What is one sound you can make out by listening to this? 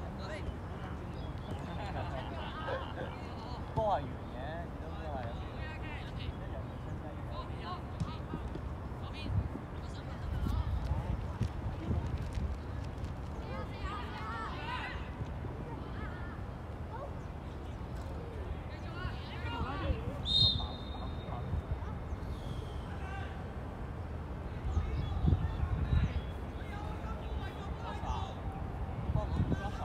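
A ball is kicked with dull thumps.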